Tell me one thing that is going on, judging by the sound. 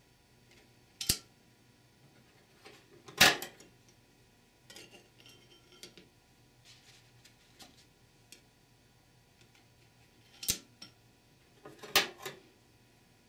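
Steel clutch plates clink against a metal transmission drum as they are stacked on.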